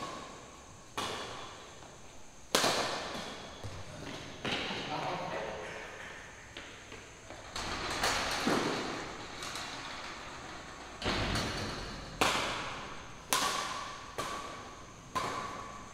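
Badminton rackets strike a shuttlecock in an echoing hall.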